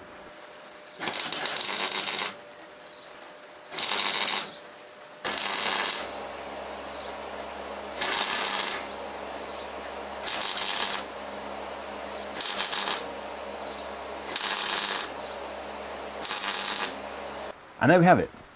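A welding torch crackles and hisses in short bursts.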